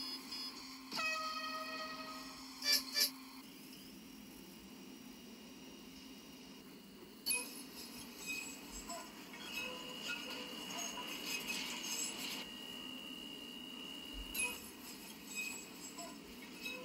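A tram's electric motor whines steadily as it moves along the track.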